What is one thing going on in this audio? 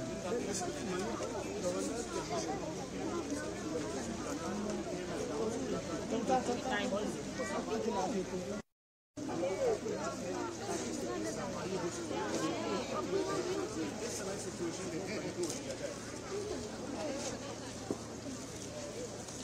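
A crowd of men and women chatter close by outdoors.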